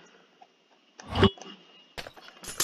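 A glass potion bottle shatters with a splash.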